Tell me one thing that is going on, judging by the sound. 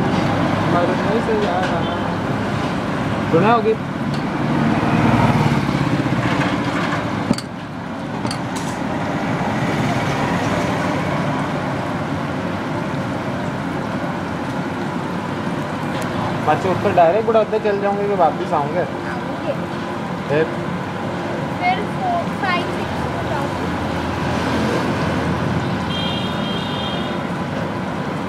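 A metal skimmer scrapes and clinks against the pan.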